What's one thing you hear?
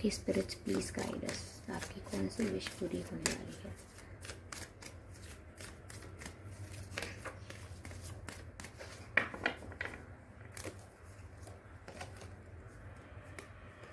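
Cards flick and slap together as a deck is shuffled.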